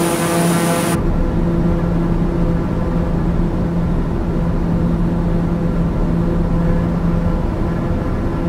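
A propeller engine hums, muffled, from inside a cockpit.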